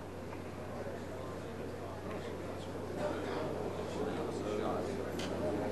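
Billiard balls click against each other.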